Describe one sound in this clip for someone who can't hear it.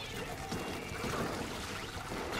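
A paint bomb bursts with a loud splash.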